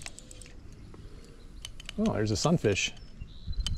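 A fishing reel clicks softly as line is wound in.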